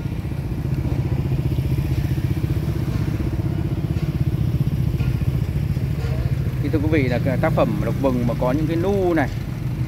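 Motorbikes ride past nearby.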